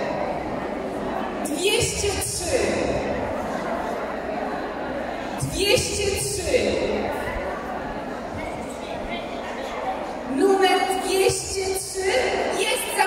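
A large crowd of women chatters in a big echoing hall.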